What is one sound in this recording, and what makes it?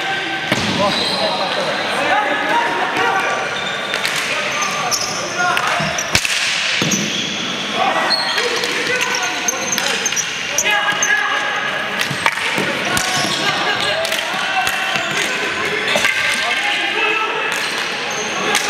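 Hockey sticks clack against the ball and the floor.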